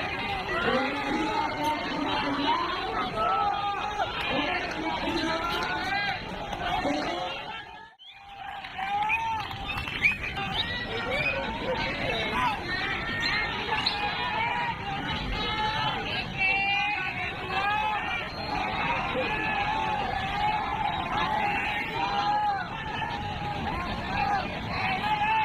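A large crowd chatters and calls out loudly outdoors.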